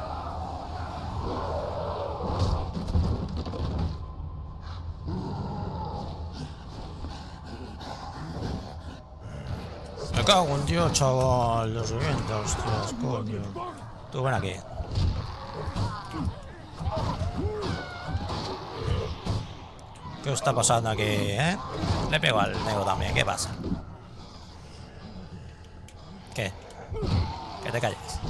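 Blows thud and squelch as a character strikes zombies.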